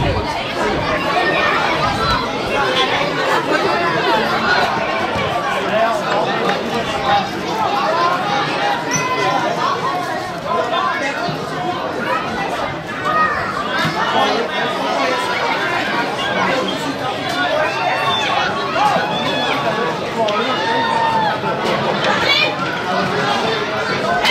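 A crowd of spectators chatters and shouts close by, outdoors.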